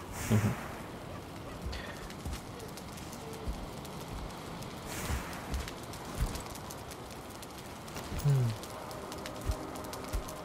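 A fire crackles in a hearth.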